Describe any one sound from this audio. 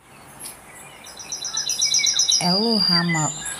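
A small bird sings a fast, high trill.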